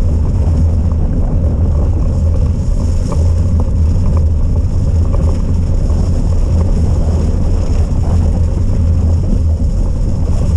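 Tyres roll over a wet, muddy track.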